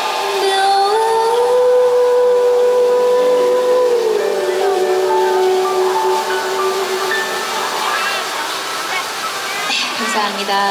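A young woman sings through a microphone and loudspeakers.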